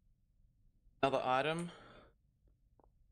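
A young man speaks briefly into a headset microphone.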